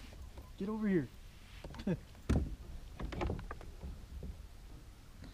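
A fishing reel clicks and whirs during a cast.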